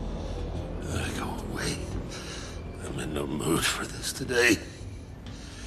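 An older man speaks in a low, gruff voice.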